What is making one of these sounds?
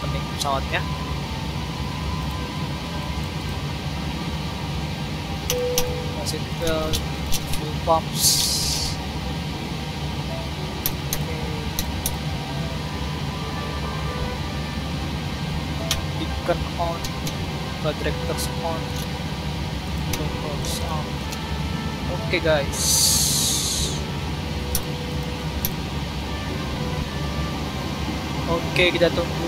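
An aircraft's systems hum steadily and low.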